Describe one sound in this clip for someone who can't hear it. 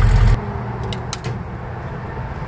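A car door clicks open.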